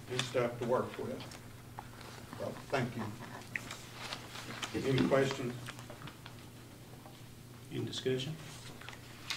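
A man speaks at a lectern, pausing often.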